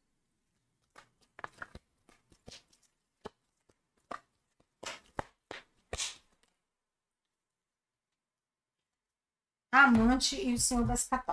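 Playing cards are shuffled and laid down softly.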